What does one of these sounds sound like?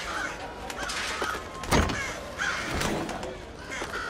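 A metal safe door creaks open.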